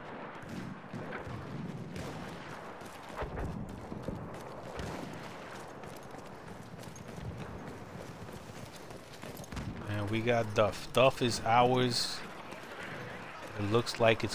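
Footsteps crunch over rocks.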